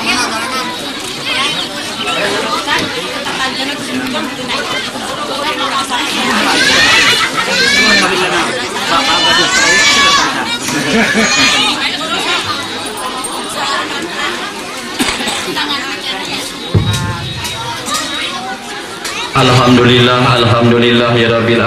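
A crowd of men and women murmur and talk nearby.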